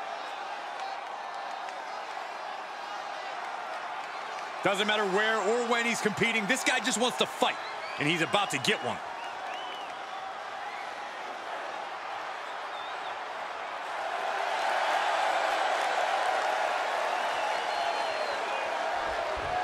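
A large crowd cheers steadily in a big arena.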